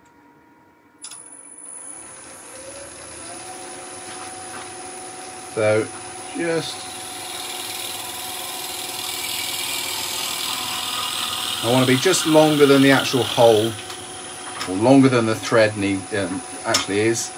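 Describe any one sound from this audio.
A lathe motor starts and hums steadily.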